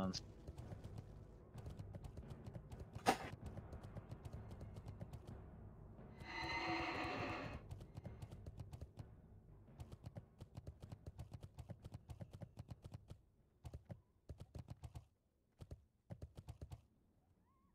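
Footsteps patter quickly and steadily as a figure runs along.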